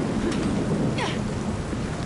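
Thunder rumbles loudly.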